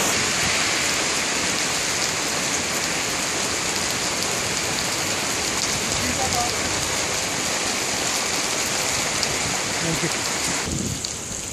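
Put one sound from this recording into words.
Heavy rain pours steadily onto wet pavement outdoors.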